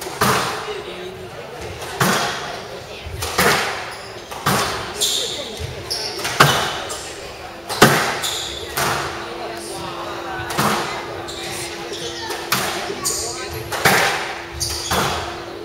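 A squash ball smacks hard against the walls and rackets, ringing through a large echoing hall.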